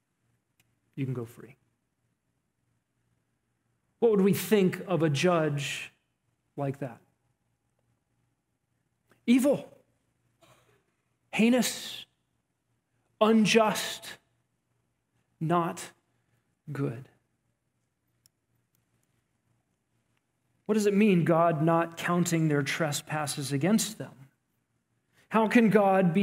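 A man speaks calmly into a headset microphone, with pauses between phrases.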